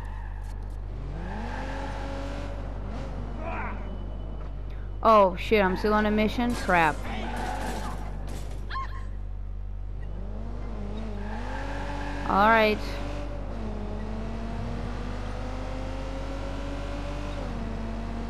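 A car engine revs and hums as the car speeds along.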